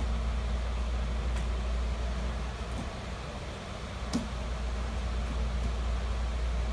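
An electric fan hums steadily.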